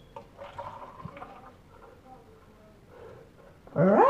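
Milk glugs as it is poured from a jug.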